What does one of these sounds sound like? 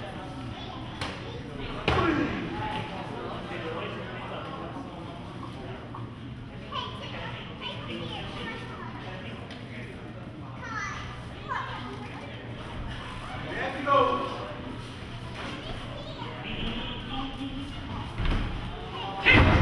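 Padded gloves thud against bodies in a boxing ring.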